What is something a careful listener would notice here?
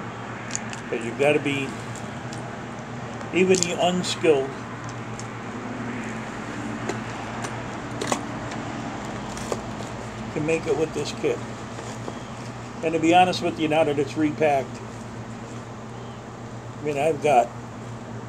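A middle-aged man speaks calmly in short bursts, close by.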